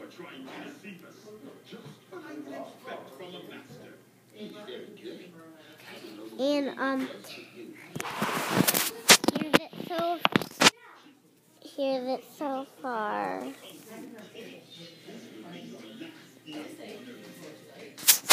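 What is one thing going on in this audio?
A young boy talks and squeals playfully, very close to the microphone.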